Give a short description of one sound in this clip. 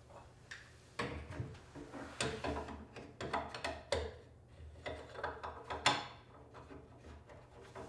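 Knocks and clicks come from a man working inside a cabinet.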